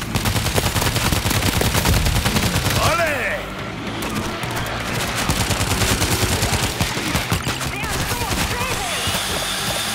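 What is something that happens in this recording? Zombies snarl and shriek.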